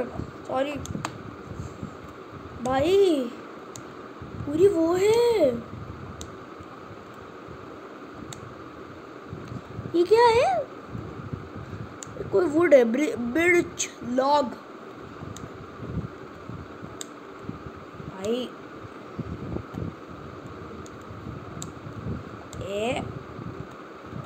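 A young boy talks calmly and close to a microphone, in short bursts.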